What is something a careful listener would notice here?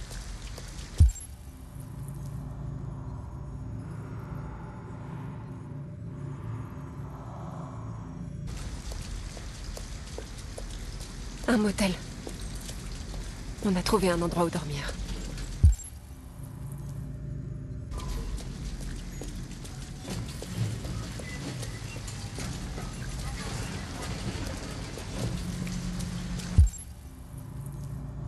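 Footsteps patter on wet pavement.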